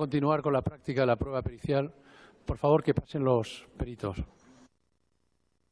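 A man speaks formally through a microphone.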